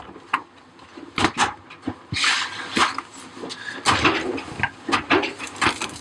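Clothes rustle as they are pulled from a dryer drum.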